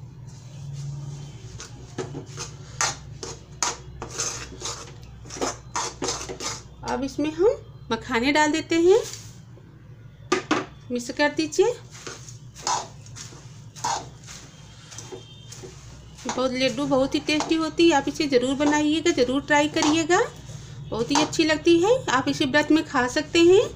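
A metal spatula scrapes and stirs in a metal pan.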